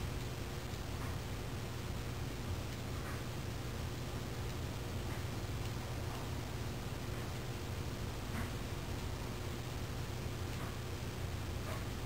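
Soft short clicks sound now and then as keys are pressed.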